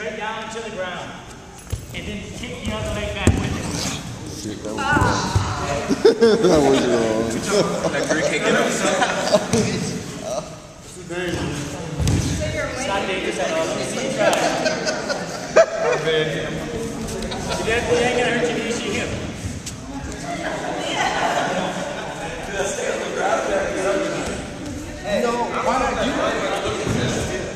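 A young man speaks with animation in a large echoing hall.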